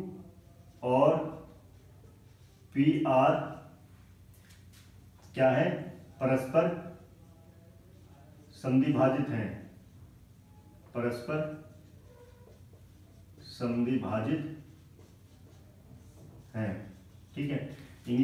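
A man speaks calmly and clearly in short phrases, close by.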